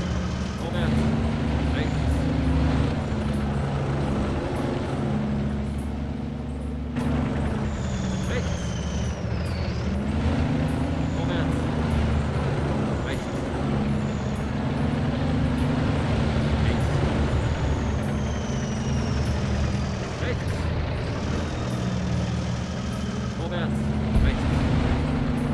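A tank engine rumbles steadily and whines as the tank moves.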